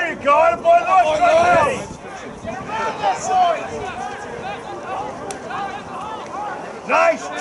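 Several voices cheer and shout excitedly close by, outdoors.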